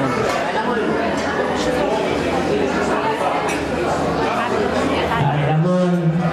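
An elderly woman speaks through a microphone.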